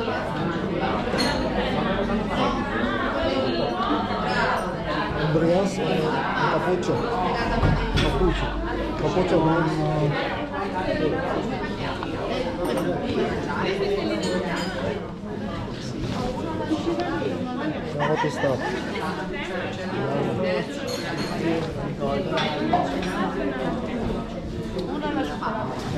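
Many people chatter all around in a busy, echoing room.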